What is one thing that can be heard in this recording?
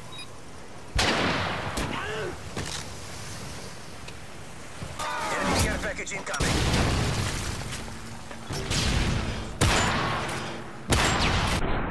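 Loud gunshots crack sharply now and then.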